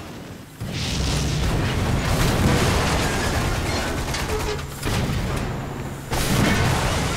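A heavy gun fires with loud booms.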